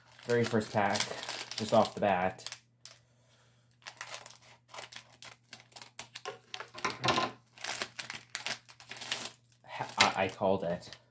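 A plastic wrapper crinkles as it is handled and torn open.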